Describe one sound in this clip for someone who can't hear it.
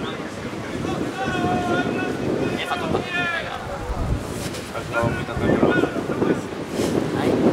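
Men call out to each other across an outdoor field.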